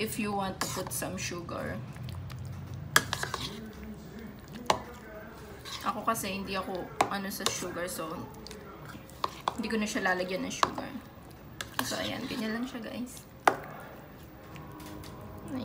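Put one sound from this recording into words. A fork clinks and scrapes against a bowl.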